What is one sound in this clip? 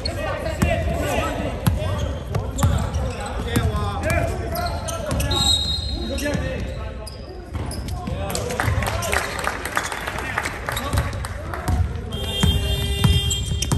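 A basketball bounces with thuds as a player dribbles.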